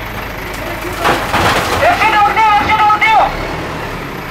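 Bricks crash and clatter as a wall is knocked down.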